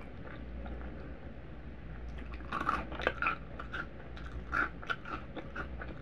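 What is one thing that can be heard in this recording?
Small crunchy cereal pieces rattle softly as fingers pick them up.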